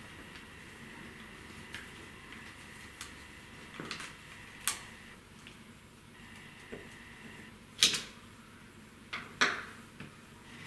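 A screwdriver clicks and scrapes against a small plastic device.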